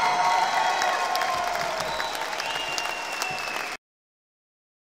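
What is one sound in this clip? A rock band plays loudly through a large hall's speakers, then cuts off abruptly.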